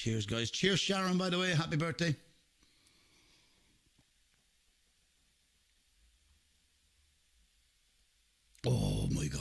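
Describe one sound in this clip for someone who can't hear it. A middle-aged man speaks animatedly into a close microphone.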